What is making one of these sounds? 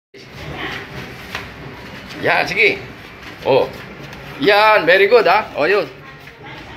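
An elderly man's slow footsteps shuffle on a hard floor.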